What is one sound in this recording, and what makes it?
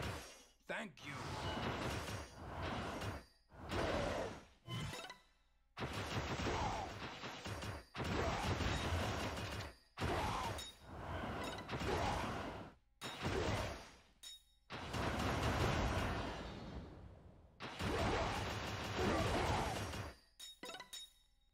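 Video game blows land with punchy thuds.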